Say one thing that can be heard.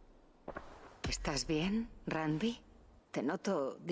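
A man speaks calmly in a deep voice.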